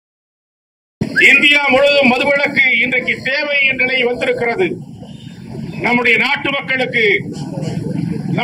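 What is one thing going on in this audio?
An elderly man speaks loudly and forcefully into a microphone.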